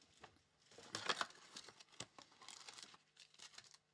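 Plastic wrap crinkles as it is torn off a box.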